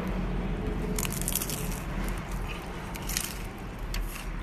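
A man crunches loudly on a crisp fried taco.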